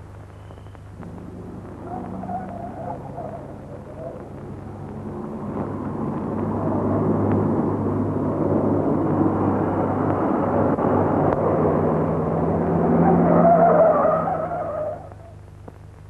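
A car engine approaches, growing louder, then cuts off.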